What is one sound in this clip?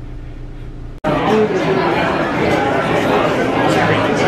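Many voices chatter in a busy, echoing room.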